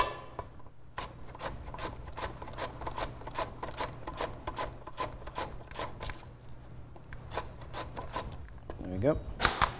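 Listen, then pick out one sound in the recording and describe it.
A knife taps quickly on a board, chopping.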